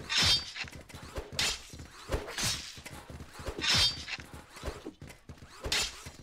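Robots shatter with sharp crunching bursts.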